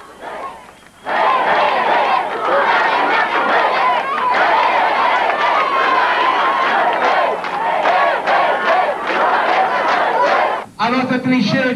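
A large crowd sings and cheers loudly.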